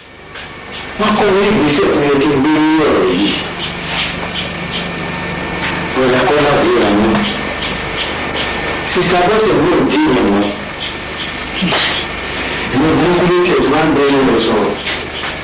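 A young man talks with animation, close by.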